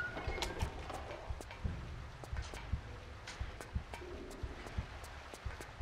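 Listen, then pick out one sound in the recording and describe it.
Footsteps thud quickly on a metal floor.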